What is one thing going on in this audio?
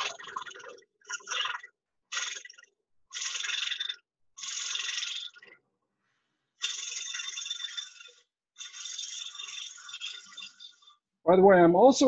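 A chisel shaves wood on a spinning lathe in short hissing bursts.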